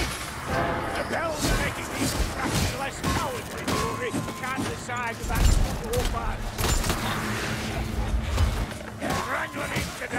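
Ratlike creatures shriek and squeal.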